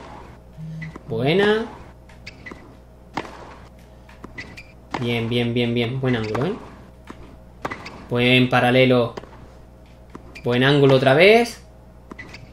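A tennis ball is struck with a racket, popping sharply back and forth.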